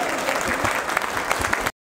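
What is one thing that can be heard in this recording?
A stringed instrument is plucked.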